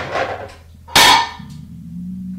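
A cat lands with a thud.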